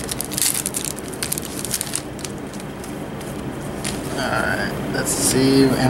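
Playing cards flick and rustle as hands shuffle through them.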